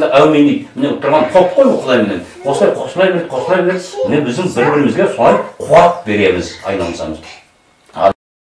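An elderly man speaks calmly and earnestly nearby.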